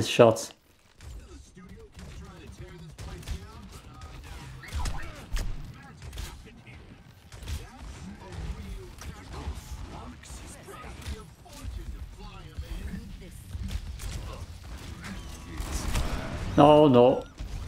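Gunfire and explosions from a video game crackle and boom.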